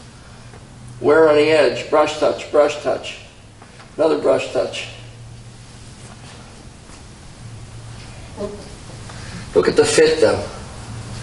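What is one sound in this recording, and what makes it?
A man talks calmly, close to a microphone.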